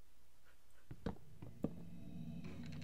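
Wooden blocks crack and break apart with dry knocks.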